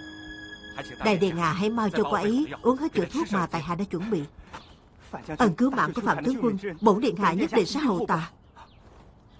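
A young man speaks earnestly up close.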